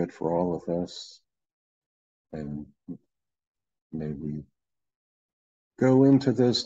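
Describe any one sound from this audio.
An older man speaks calmly in short phrases through an online call.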